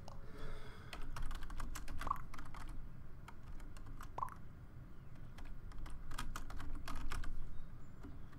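Soft game clicks tick quickly.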